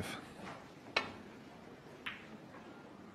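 Snooker balls click sharply against each other.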